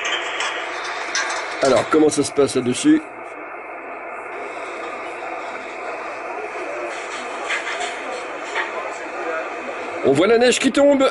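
Radio static hisses steadily in the background.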